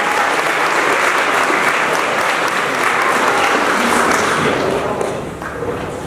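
A crowd of young men cheers loudly in a large room.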